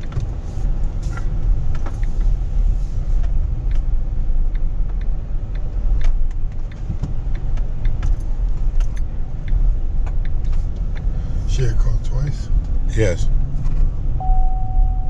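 Tyres rumble over the road.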